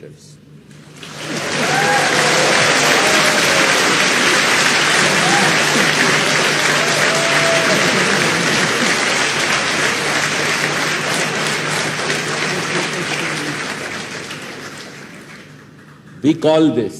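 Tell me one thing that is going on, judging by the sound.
An audience applauds loudly and then the clapping fades.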